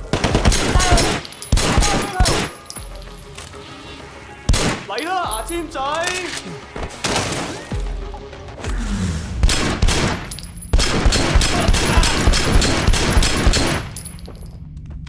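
Pistol shots ring out in rapid bursts.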